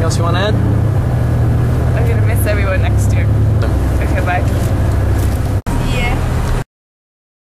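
An engine rumbles low and steady, heard from inside a moving bus.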